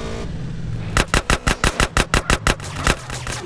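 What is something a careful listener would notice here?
A gun fires in a rapid burst of shots.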